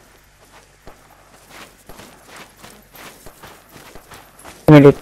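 Footsteps crunch on loose gravel at a steady walking pace.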